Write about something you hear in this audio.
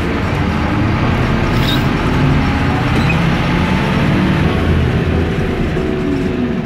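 Car engines idle and rumble in heavy traffic nearby.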